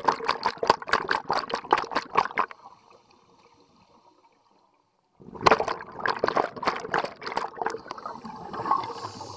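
Scuba bubbles gurgle and burble loudly underwater in quick bursts.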